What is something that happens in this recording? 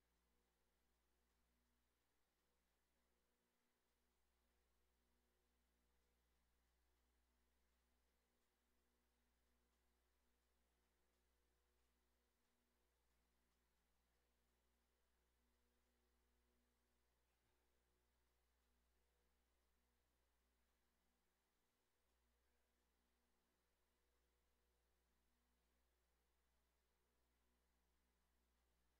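An indoor bike trainer hums steadily.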